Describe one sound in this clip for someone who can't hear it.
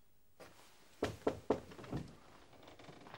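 A door knocks and rattles as it is pulled open.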